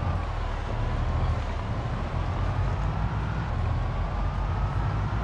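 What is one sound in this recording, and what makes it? A van engine hums steadily as it drives.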